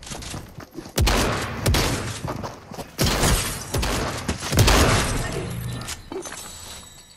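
A pickaxe strikes rock with sharp, repeated hits.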